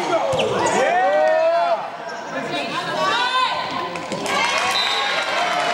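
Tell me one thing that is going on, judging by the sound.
Young girls shout and call out to each other across the court.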